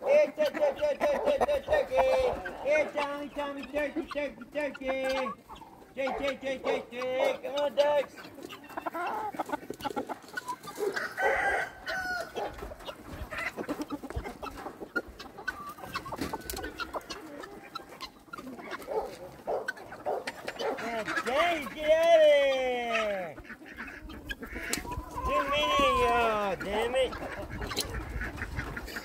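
Chickens cluck and chatter close by.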